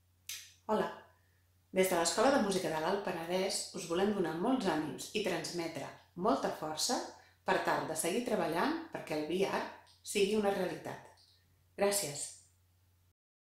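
A woman speaks calmly and warmly, close up.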